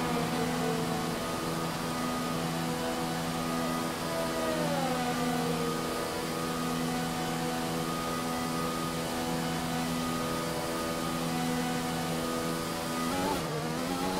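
A racing car engine idles with a steady hum.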